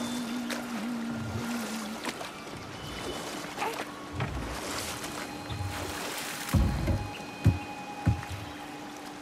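Oars splash softly in water.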